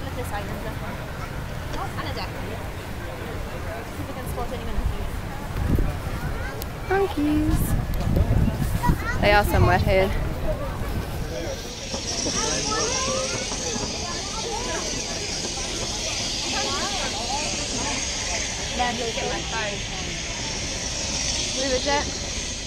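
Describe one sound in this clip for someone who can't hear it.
A crowd of people chatter in the background outdoors.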